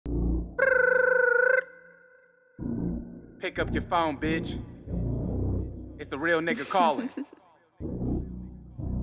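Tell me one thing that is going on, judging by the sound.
A heavy beat thumps.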